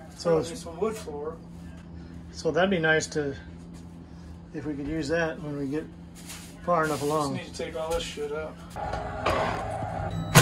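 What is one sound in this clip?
A scraper scrapes across a floor.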